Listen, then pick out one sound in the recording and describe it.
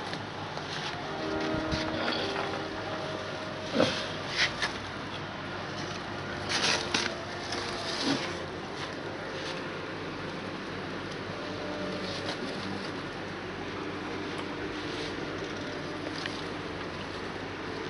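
Rope cords rustle and creak as they are pulled tight and woven.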